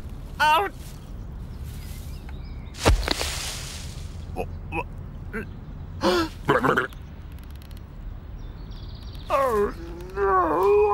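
A man groans and mutters in a comical voice.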